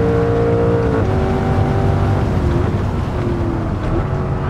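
A racing car engine drops in pitch as the gears shift down.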